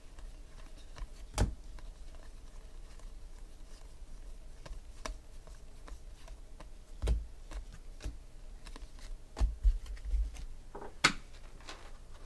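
Trading cards shuffle and flick against each other in hands.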